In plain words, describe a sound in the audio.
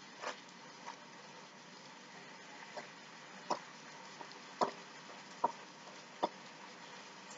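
A wooden spoon knocks and scrapes against a metal pan.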